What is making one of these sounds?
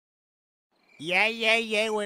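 A man shouts loudly from nearby.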